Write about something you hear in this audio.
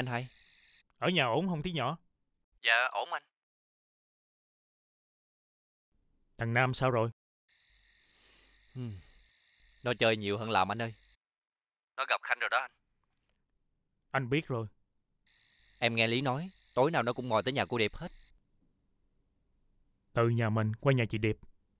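A second man answers calmly on a phone, close by.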